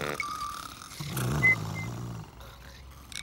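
A man snores loudly.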